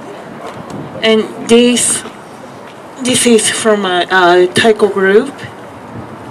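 A woman speaks through a handheld microphone.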